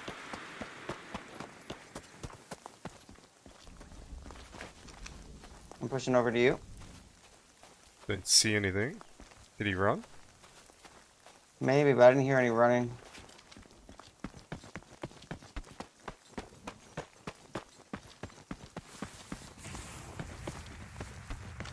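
Footsteps tread steadily over ground.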